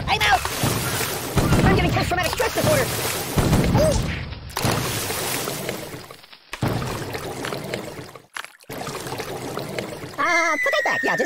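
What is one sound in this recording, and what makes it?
Water splashes and sloshes around a floating toy.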